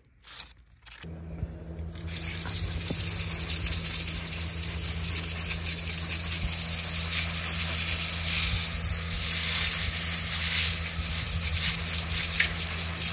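A pressure washer motor hums steadily.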